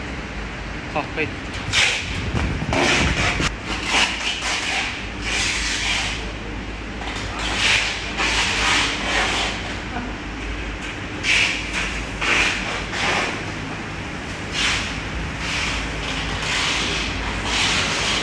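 Workers clatter and knock as they handle heavy machine parts.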